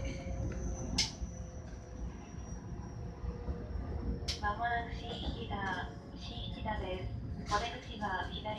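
Train wheels clack over rail joints now and then.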